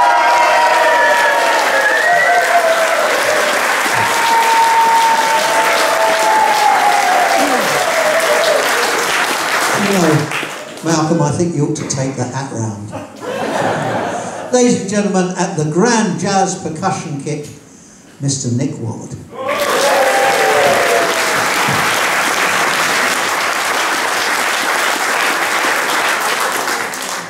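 A big band plays loud swinging music with saxophones and brass.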